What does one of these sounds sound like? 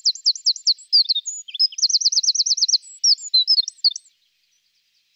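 A small bird sings a loud, rapid song of high trills and chirps, in bursts.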